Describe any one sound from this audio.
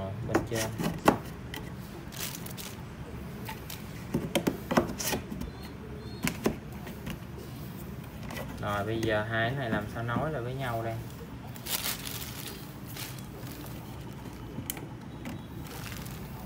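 Hard plastic panels click and knock as they are snapped into place.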